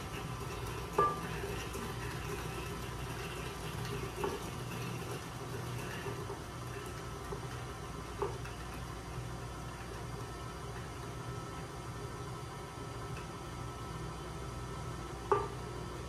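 A spatula scrapes and taps against a metal mixing bowl.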